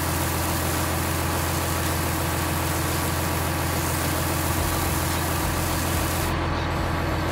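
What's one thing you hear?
Gravel pours and rattles into a truck bed.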